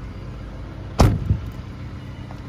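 A car door shuts with a solid thud.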